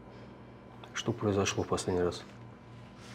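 A man speaks calmly in a low voice close by.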